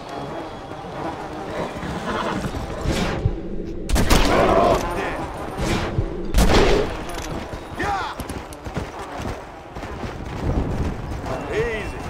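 Horse hooves pound steadily over snowy ground.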